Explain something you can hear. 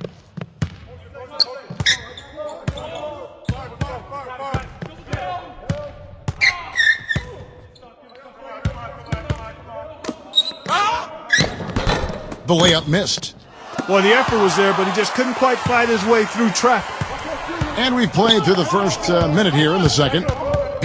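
A basketball bounces on a hardwood court in steady dribbles.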